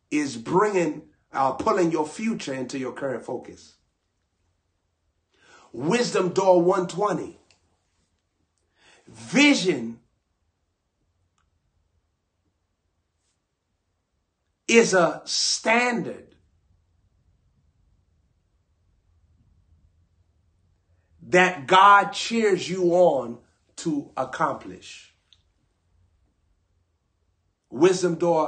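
A young man speaks close to a microphone, with animation and pauses.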